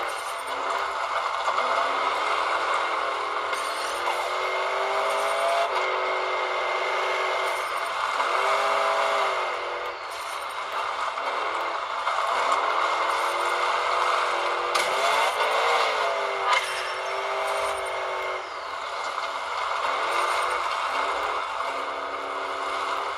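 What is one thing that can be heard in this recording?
A game's truck engine revs and roars through a small loudspeaker.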